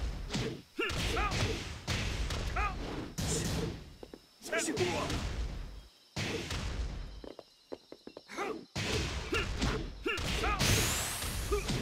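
Heavy punches and kicks land with sharp smacking thuds.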